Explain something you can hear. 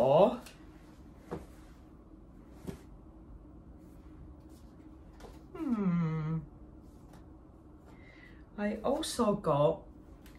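An older woman speaks calmly and close by, in short bursts with pauses.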